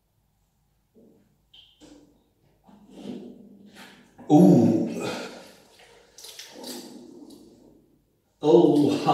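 A plastic bottle crinkles in a young man's hands.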